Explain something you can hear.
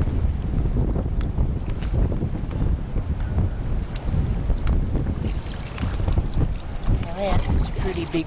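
Feet wade and splash through shallow water.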